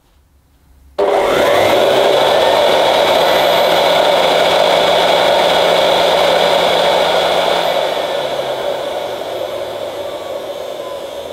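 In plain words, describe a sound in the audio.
A vacuum cleaner motor whirs steadily, then slowly winds down.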